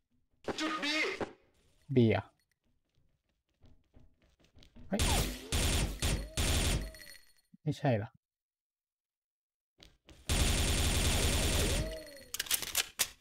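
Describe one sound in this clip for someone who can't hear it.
An automatic rifle fires rapid bursts of shots.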